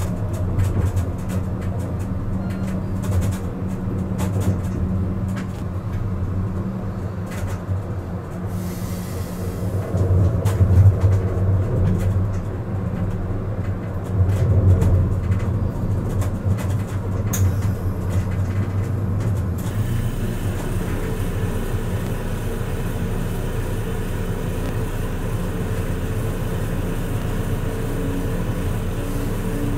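A tram rumbles steadily along its rails.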